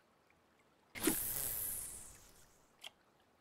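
A fishing line whooshes out in a cast.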